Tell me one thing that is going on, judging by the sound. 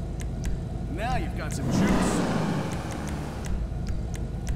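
A car engine revs up briefly with a rushing whoosh.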